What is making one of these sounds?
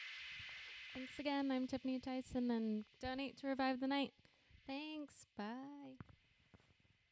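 A young woman speaks with animation through a handheld microphone.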